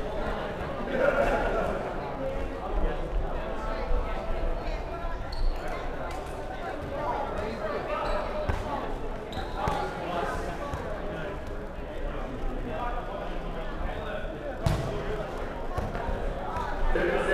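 Young players shout and call to each other in a large echoing hall.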